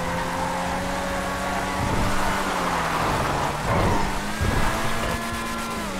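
Tyres screech as a car drifts and skids.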